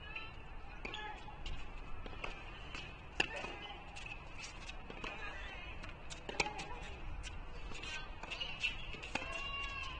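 A tennis ball is struck back and forth with rackets in sharp pops.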